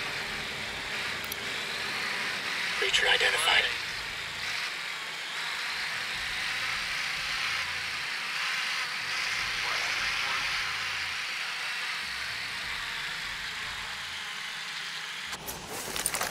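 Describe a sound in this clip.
A small drone hums steadily in the open air.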